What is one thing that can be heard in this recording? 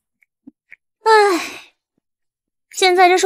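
A young woman cries out in a high, strained voice close by.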